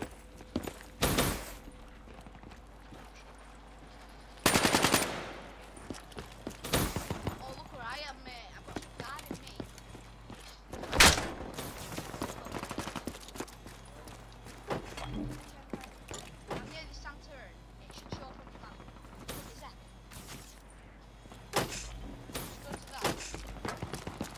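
Gunfire rattles in short, rapid bursts.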